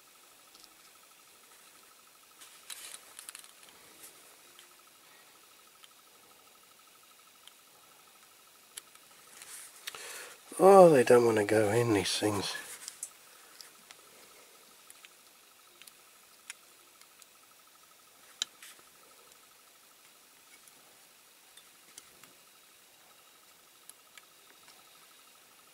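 A screwdriver clicks and scrapes against small plastic parts.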